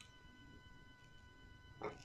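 A young woman sips a drink.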